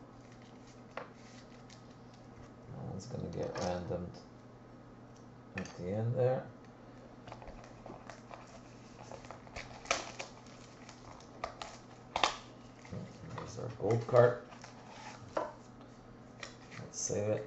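Plastic wrapping crinkles and rustles as cards are handled.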